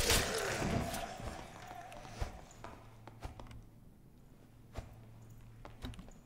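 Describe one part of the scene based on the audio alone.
Footsteps crunch over stone and rubble.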